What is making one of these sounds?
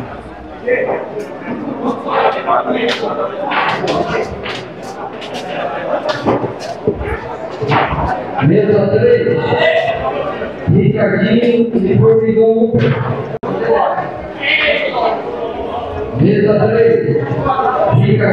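A crowd of men chatters and calls out in a large room.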